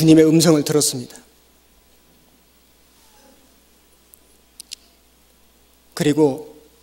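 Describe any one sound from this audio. A man speaks calmly and emphatically into a microphone, pausing between phrases.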